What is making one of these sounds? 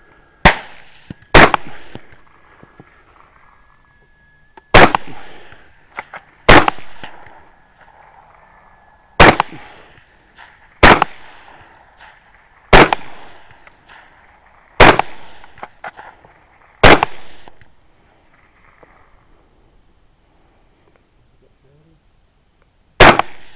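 A rifle fires loud shots close by, each one echoing and rolling away across open ground.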